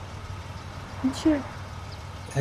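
A young woman speaks briefly and softly nearby.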